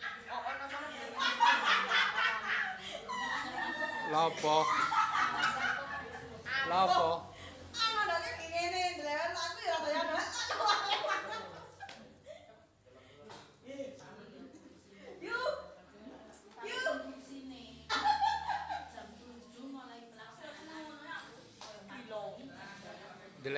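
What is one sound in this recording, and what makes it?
Several women and men talk nearby.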